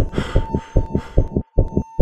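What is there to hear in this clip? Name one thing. A hand drum is struck in a quick, steady rhythm.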